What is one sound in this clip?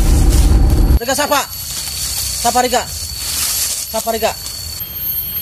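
A young man speaks loudly and with animation close by.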